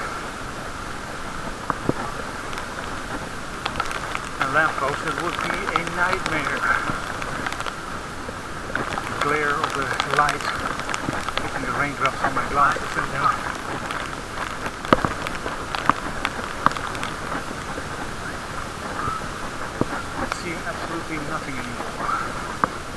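Wind rushes past as a bicycle rides along outdoors.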